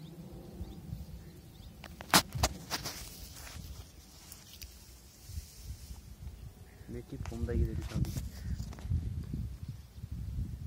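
Tall grass rustles and swishes in the wind.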